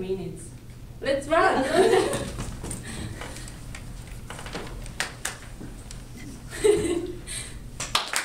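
Young women laugh together.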